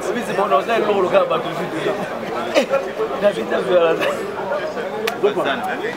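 Two men talk loudly close by, outdoors.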